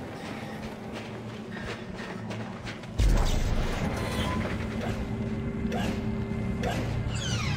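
Heavy footsteps thud slowly on the ground.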